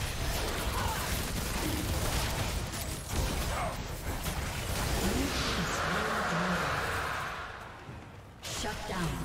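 Magic spell effects crackle and whoosh in a busy fight.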